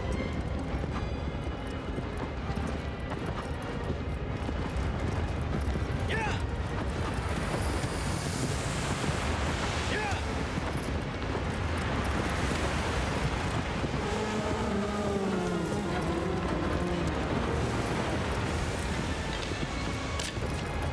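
Strong wind roars and howls steadily.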